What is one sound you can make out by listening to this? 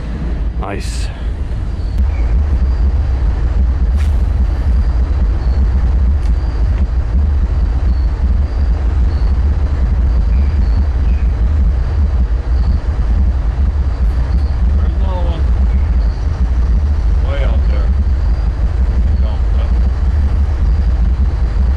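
A river flows and laps gently.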